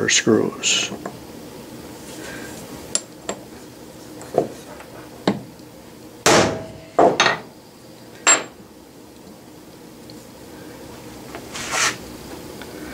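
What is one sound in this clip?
Metal parts clink against each other as they are handled.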